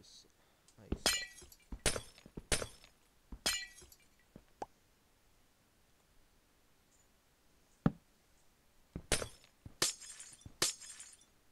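A pickaxe chips and breaks blocks of ice in short bursts.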